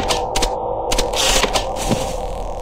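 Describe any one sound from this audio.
Static hisses loudly in a short burst.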